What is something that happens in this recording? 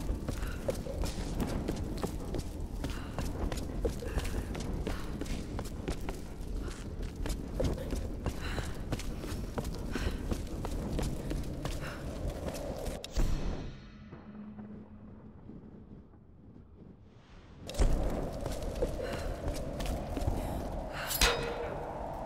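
Footsteps scuff on a hard, gritty floor.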